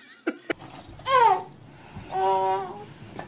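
A baby squeals and babbles loudly.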